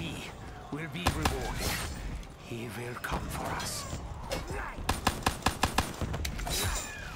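A pistol fires in rapid bursts.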